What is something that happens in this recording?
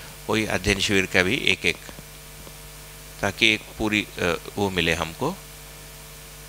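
A man speaks calmly and close through a microphone.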